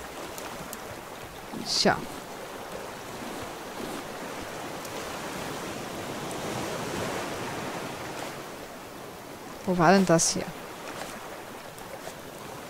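Water laps gently against a wooden raft.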